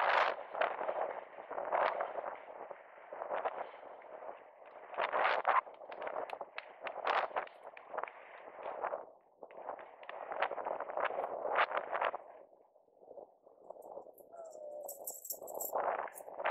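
Inline skate wheels roll and scrape over asphalt in rhythmic pushes.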